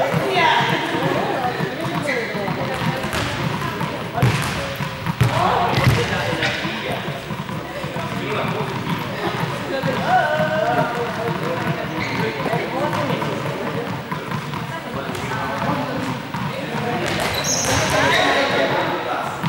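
Several young people talk and call out in a large echoing hall.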